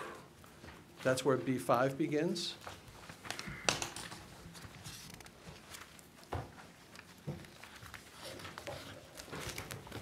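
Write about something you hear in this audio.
Paper pages rustle as a man turns them.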